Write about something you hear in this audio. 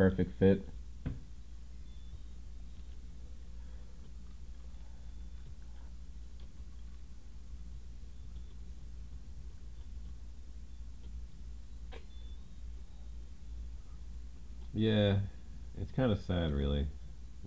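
A computer game plays short, bleeping electronic tunes.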